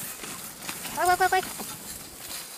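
A young woman calls out loudly nearby.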